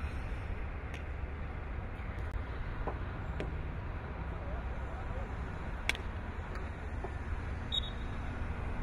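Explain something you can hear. Sticks strike a ball with sharp clacks.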